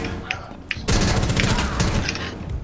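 A rifle fires in rapid bursts nearby.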